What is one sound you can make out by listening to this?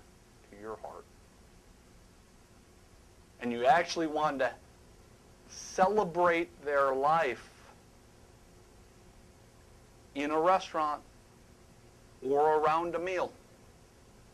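A middle-aged man speaks with animation in short bursts, heard through a microphone.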